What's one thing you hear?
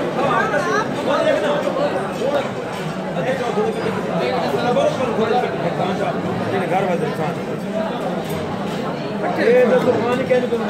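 A man speaks loudly close by.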